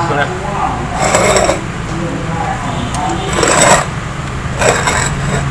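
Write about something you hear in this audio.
Soil scrapes and rustles in a pot.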